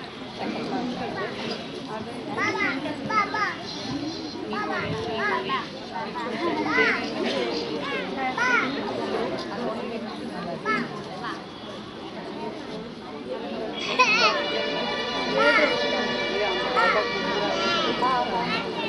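Young children chatter and call out nearby outdoors.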